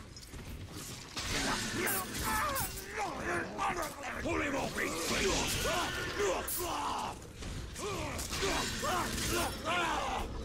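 Blades clash and strike in a fight.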